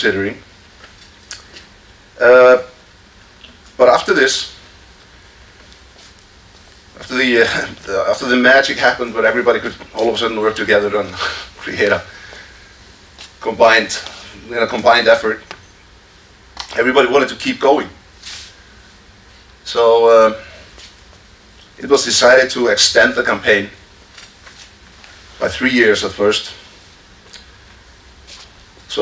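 A man speaks calmly into a microphone, heard through loudspeakers in a large echoing hall, with pauses between phrases.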